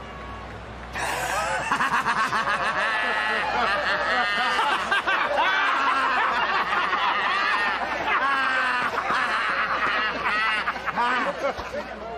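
Several men laugh and cheer loudly together.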